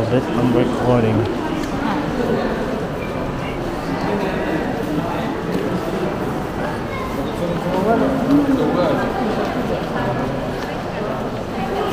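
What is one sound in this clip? A crowd of people talk in a large echoing indoor space.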